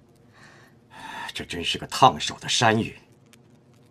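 A middle-aged man speaks in a low, strained voice.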